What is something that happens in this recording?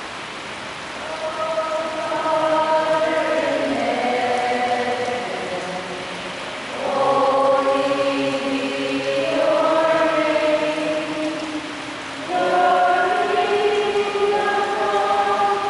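A man chants in a steady, sung voice through a microphone.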